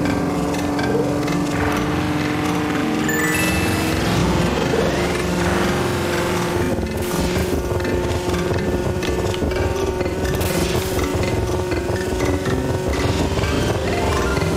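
A kart engine hums steadily, rising slightly in pitch.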